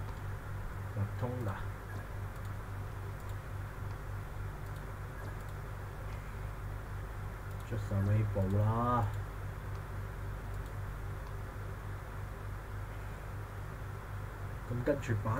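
A young man speaks briefly and casually into a nearby microphone.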